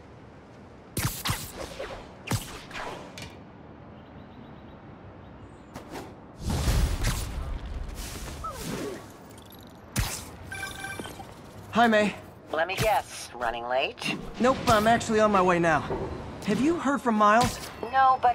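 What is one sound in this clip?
Web lines shoot out with sharp snaps.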